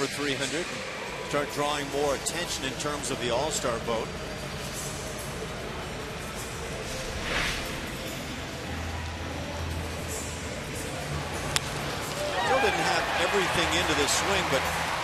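A large crowd murmurs in an open, echoing stadium.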